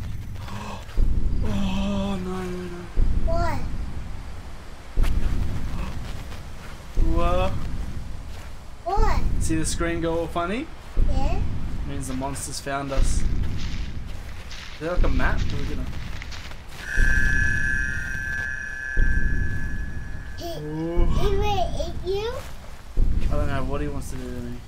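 A young child talks with animation close to a microphone.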